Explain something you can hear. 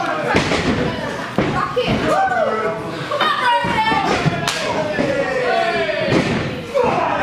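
Bodies slam heavily onto a wrestling ring's canvas.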